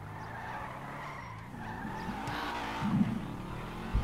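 Tyres screech as a car skids around a corner.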